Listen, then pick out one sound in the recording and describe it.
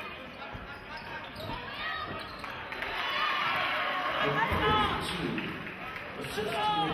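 A crowd murmurs and cheers in the stands.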